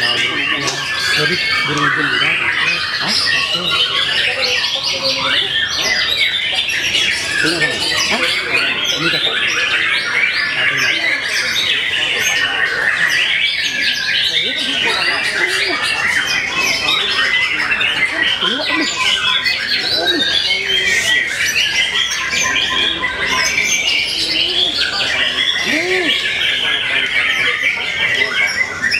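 A songbird sings loud, rapid, varied chirps and whistles close by.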